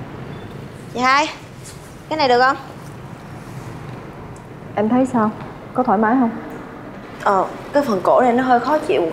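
A young woman speaks loudly and sharply, close by.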